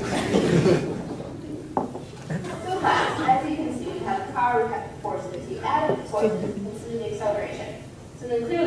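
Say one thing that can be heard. A young woman speaks calmly, explaining, in a room.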